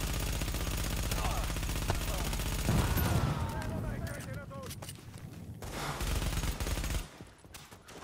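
Rapid gunfire rattles nearby.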